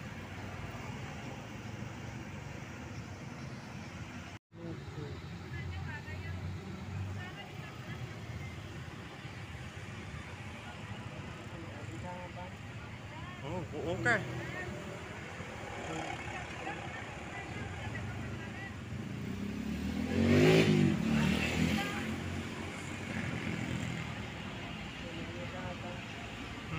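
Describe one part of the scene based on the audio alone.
Street traffic hums in the background.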